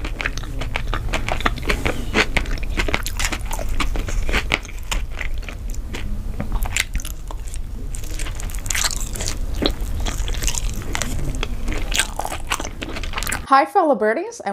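A young woman chews and munches food wetly, close to a microphone.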